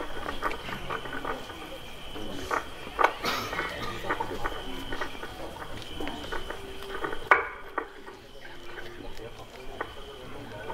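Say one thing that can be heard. A small crowd of men and women murmur quietly nearby.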